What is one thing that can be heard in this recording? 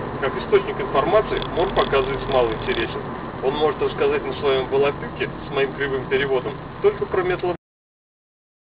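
A man talks inside a car.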